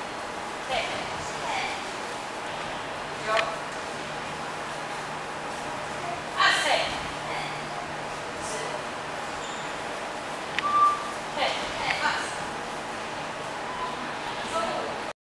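Young women shout together in short sharp bursts in a hall that echoes.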